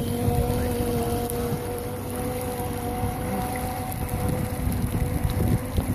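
An outboard motor drives an inflatable rescue boat as it pulls away across the water.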